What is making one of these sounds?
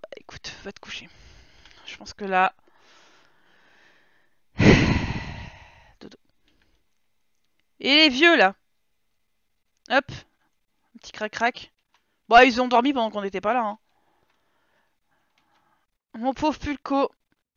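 A young woman talks animatedly into a headset microphone, in short bursts.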